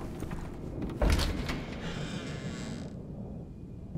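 A heavy wooden door bangs and creaks open.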